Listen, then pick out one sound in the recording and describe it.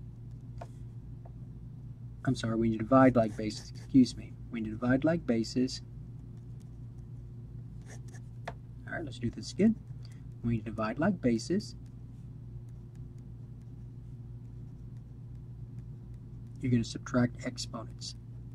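A felt-tip marker squeaks and scratches on paper.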